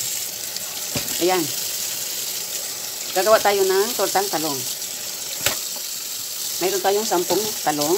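Tap water runs steadily and splashes into a sink.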